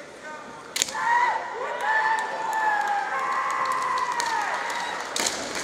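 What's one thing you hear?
Two fencers let out long, loud shouts in an echoing hall.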